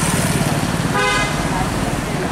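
A car horn honks briefly.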